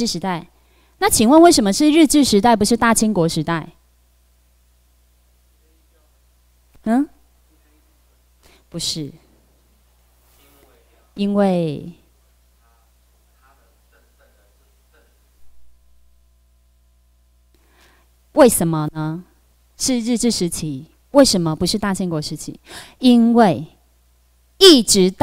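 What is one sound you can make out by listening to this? A young woman speaks into a microphone over a loudspeaker, calmly and with pauses.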